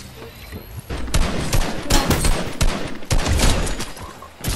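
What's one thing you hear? A rifle fires in quick bursts.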